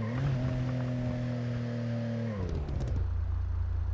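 A car engine hums steadily, then winds down.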